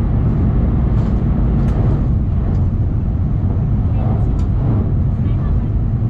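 Wheels click over rail joints.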